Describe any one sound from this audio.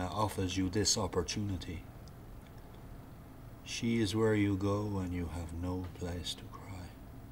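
A middle-aged man speaks close by in a low, intense voice.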